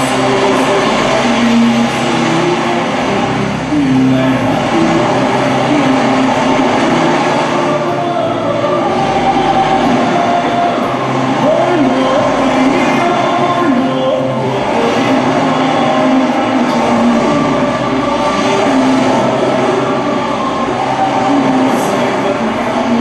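Loud music plays over loudspeakers in a large echoing hall.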